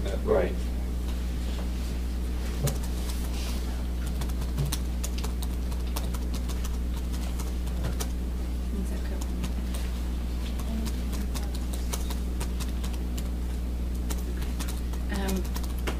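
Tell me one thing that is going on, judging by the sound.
A pen scratches softly on paper close by.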